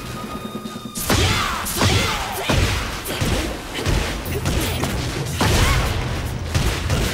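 Punches and kicks land with heavy smacking hits.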